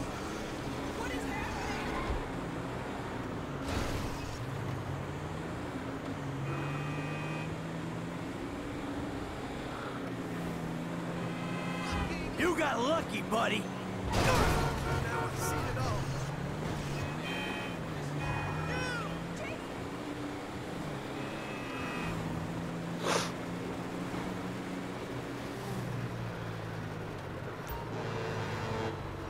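A car engine hums and revs as it drives along a road.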